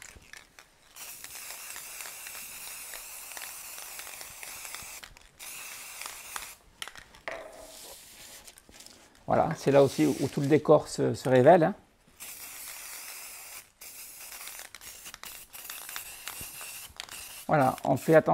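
A spray can hisses in short and long bursts.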